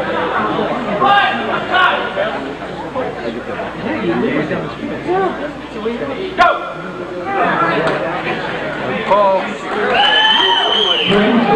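A crowd of people chatters and shouts in a room.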